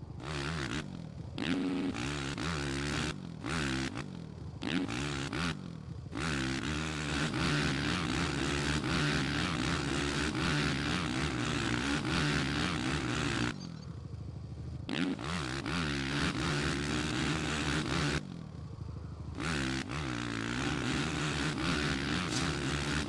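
A motorbike engine revs up and down, changing pitch as the rider shifts gears.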